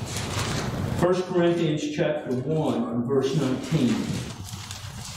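A man speaks steadily at a distance in an echoing room.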